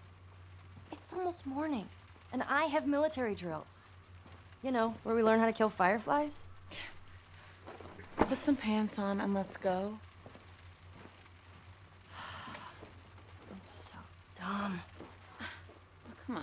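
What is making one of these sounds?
A second teenage girl answers with animation.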